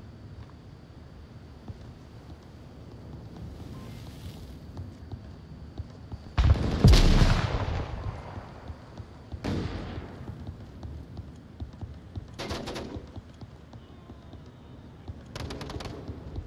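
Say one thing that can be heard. Footsteps tread steadily on hard ground.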